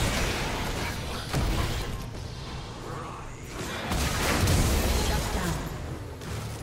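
Video game spell effects crackle and burst during a fight.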